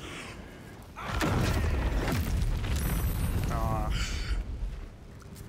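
A fiery magical blast booms and crackles.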